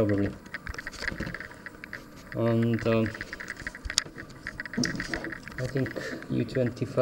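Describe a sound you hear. Metal tweezers tap lightly against a circuit board.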